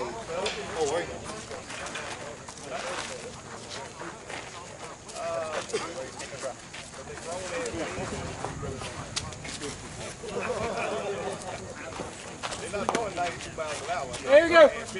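Several men talk and call out outdoors, some close and some farther off.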